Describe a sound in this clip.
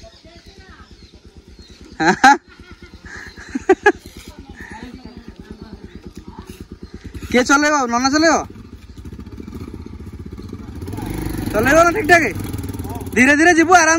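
A motorbike engine idles with a steady low putter.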